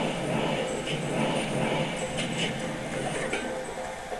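A fiery explosion bursts and crackles.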